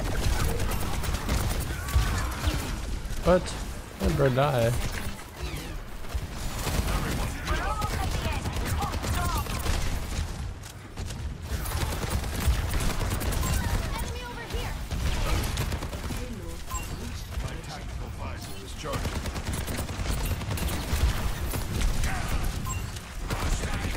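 Rapid gunfire rattles throughout.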